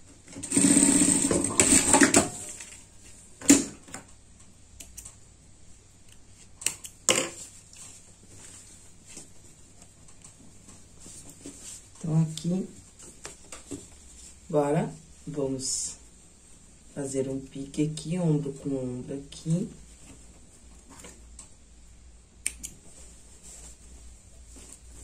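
Cotton fabric rustles as hands fold and handle it.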